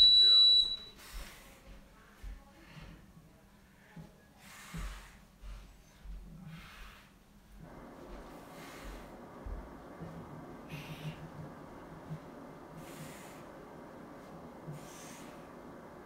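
A man breathes heavily.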